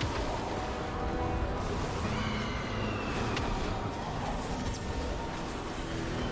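Magic spell effects whoosh and crackle.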